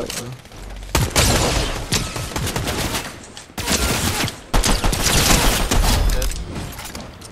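Gunshots crack in quick bursts.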